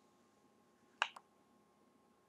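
A menu selection beeps with a short click.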